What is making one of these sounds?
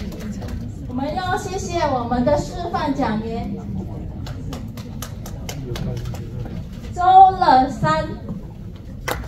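A woman speaks into a microphone over loudspeakers in a room.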